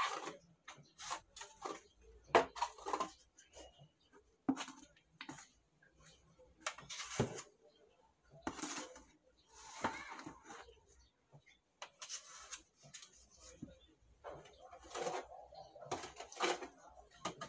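A metal scraper rasps across a plaster wall in short strokes.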